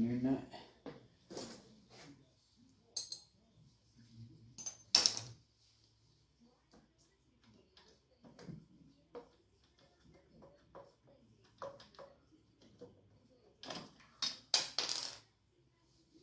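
Metal tools clink and clatter against each other and the floor.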